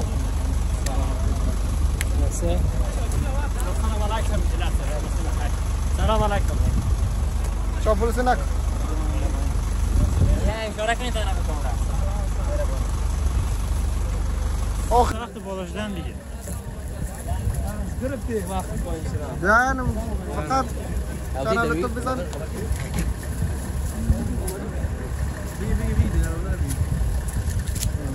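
Young men talk and call out cheerfully close by.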